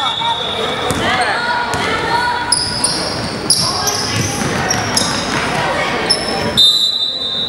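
Children shout and call out across an echoing hall.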